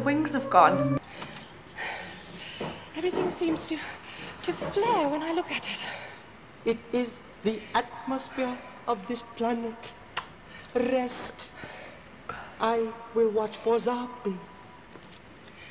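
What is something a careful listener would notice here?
A young woman talks calmly and thoughtfully into a nearby microphone.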